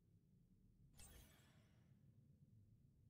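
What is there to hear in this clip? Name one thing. A game menu gives a short swooshing click.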